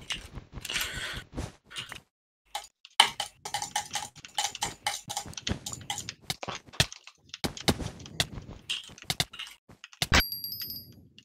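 Blocks are struck and broken in quick clicks.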